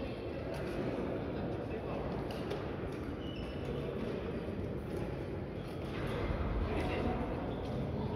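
Shuttlecocks are struck with sharp taps of rackets in a large echoing hall.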